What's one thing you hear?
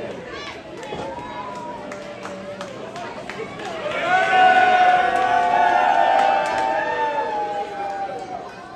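Audience members clap their hands.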